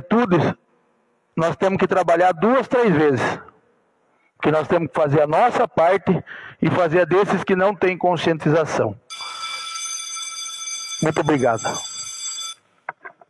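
A middle-aged man speaks forcefully through a microphone.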